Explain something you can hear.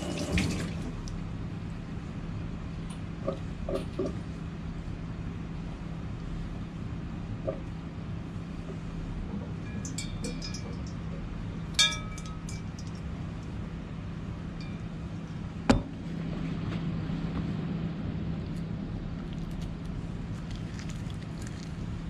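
Wet hands squelch as they handle raw fish.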